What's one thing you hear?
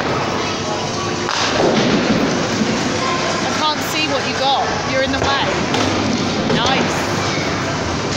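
Noisy chatter and rumble fill a large echoing room.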